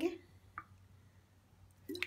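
A small bottle of powder is shaken over a bowl.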